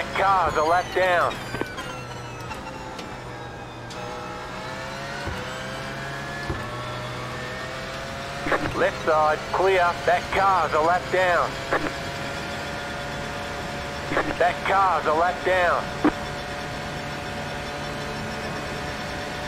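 A race car engine drones steadily and rises in pitch as the car speeds up.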